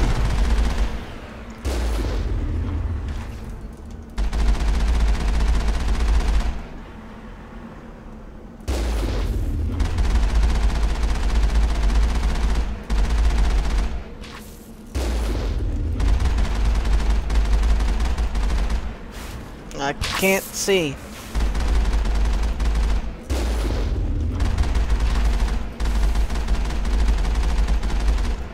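A heavy vehicle engine rumbles deeply in bursts.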